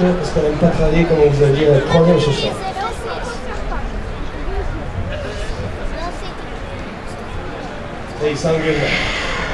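A man sings into a microphone through loudspeakers outdoors.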